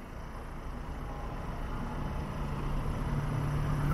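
Cars drive by on the road.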